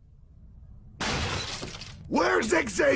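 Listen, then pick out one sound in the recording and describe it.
A wall crashes and splinters.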